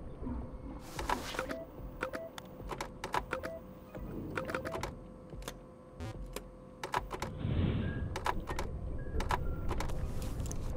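Electronic static crackles in short bursts.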